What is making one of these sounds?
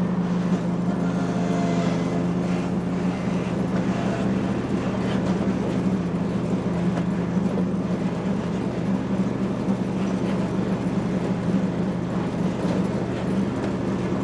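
A ride-on mower's engine drones steadily close by.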